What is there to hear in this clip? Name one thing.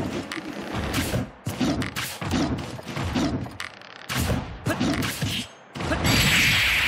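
Punches and blows thud and clash in a fast-paced fighting game.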